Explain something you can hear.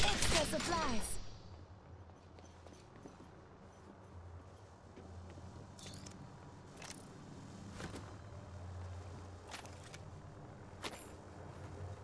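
Short metallic clicks sound as gear is picked up.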